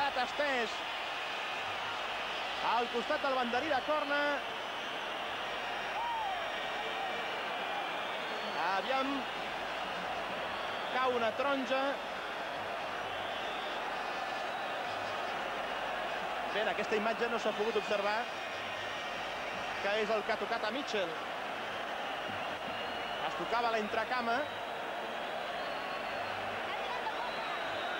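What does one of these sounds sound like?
A large crowd murmurs and roars steadily in a big open stadium.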